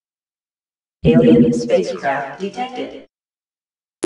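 An alert tone sounds from a game interface.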